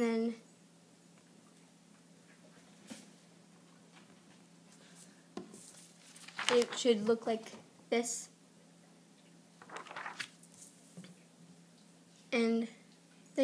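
A young girl speaks quietly and close by.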